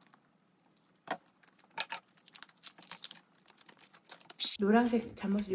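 Foil wrapping crinkles as it is peeled open.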